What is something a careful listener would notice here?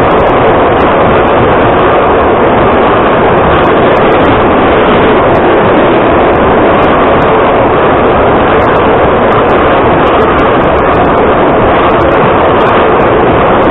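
A subway train rumbles and roars loudly as it runs through a tunnel.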